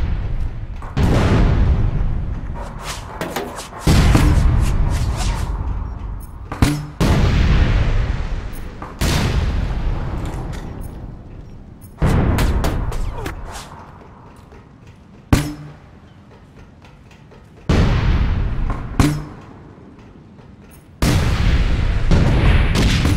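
Gunshots ring out in loud bursts that echo and fade.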